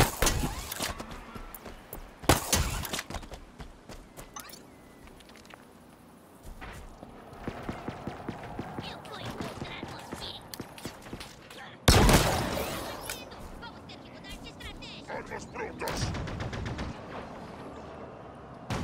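Loud gunshots and blasts burst out in short volleys.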